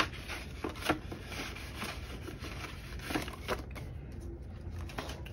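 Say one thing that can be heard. Plastic sleeves crinkle and tap as pages are handled.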